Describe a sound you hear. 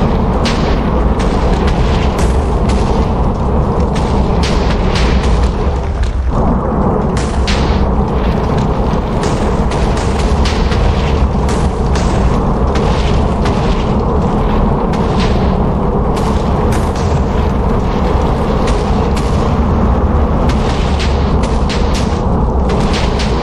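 Explosions boom and rumble continuously with loud cracks.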